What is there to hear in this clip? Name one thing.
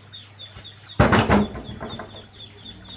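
A wooden stand bumps and clatters on a hard floor.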